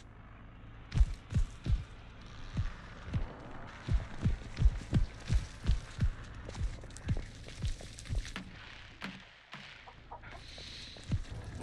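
Heavy footsteps thud on dirt at a steady walking pace.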